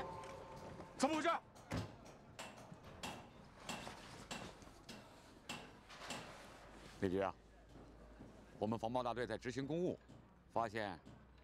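A middle-aged man speaks firmly, close by.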